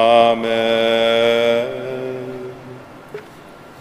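A man chants through a loudspeaker in a large echoing hall.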